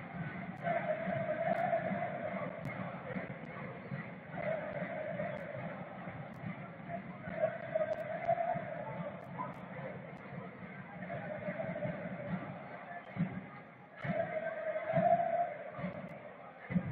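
A large stadium crowd chants and sings in repeating waves.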